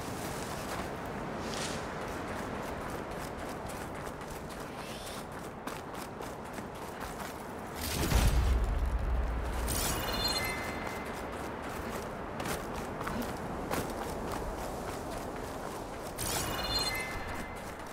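Wind howls steadily through a snowstorm.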